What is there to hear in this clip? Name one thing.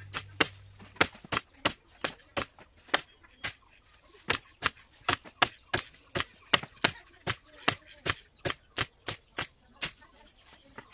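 A pneumatic staple gun fires in quick, sharp bursts.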